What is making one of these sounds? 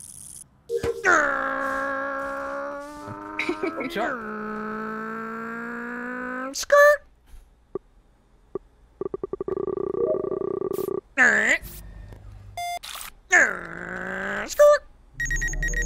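A man sings long, drawn-out notes close to a microphone.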